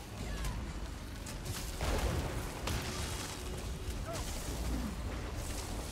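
Heavy blows thud and crash in a fight.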